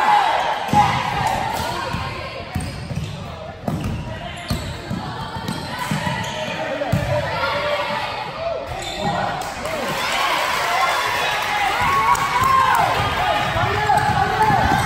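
A ball bounces on a wooden court.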